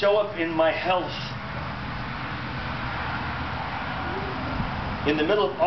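A man speaks calmly, close by, with pauses.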